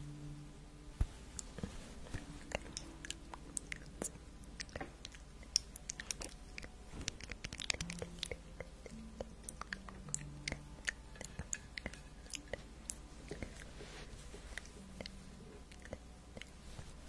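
Fingers scratch and tap on a fuzzy microphone cover, with crisp clicks.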